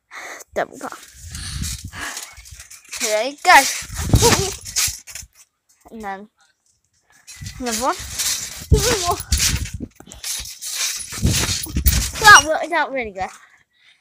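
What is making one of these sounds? A trampoline thumps and creaks as a girl bounces on it.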